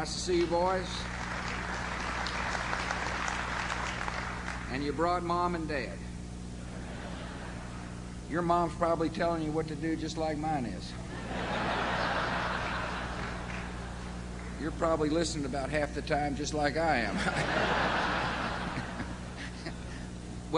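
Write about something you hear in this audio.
A crowd laughs loudly.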